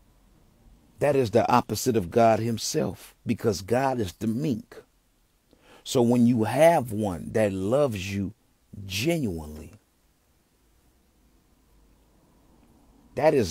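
A man sings closely into a microphone with feeling.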